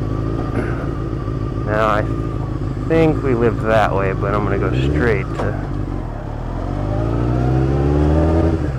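A motorcycle engine hums and revs up and down.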